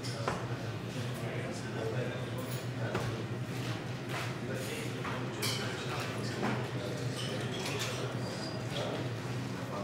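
A crowd of men chatters in the background of a room.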